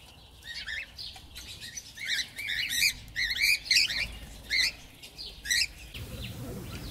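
Parrots screech and squawk loudly.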